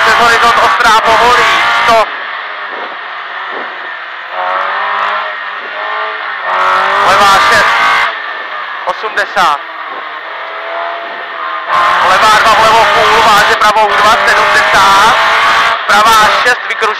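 A rally car engine roars and revs hard, rising and falling in pitch.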